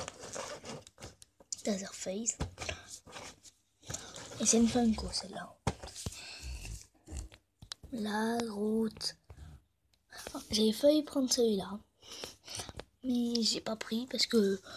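Fingers rub and tap against a cardboard box.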